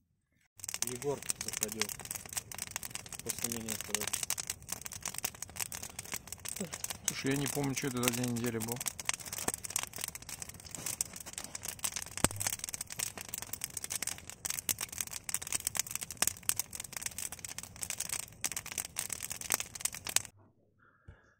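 A campfire crackles and pops loudly.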